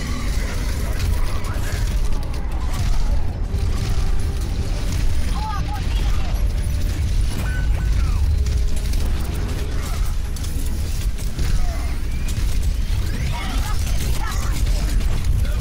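A heavy gun fires rapid bursts of shots.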